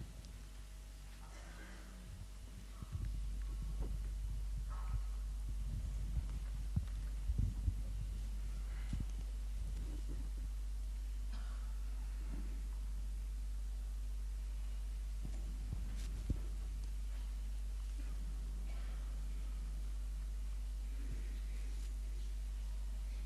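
Cloth robes rustle as men embrace.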